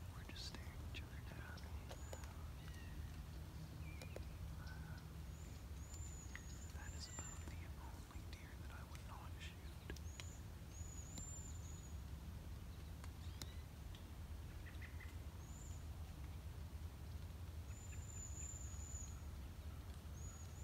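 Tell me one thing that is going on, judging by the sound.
Wind blows softly through the trees.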